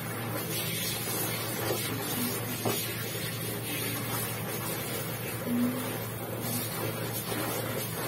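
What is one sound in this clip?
Water splashes as clothes are scrubbed by hand in a basin.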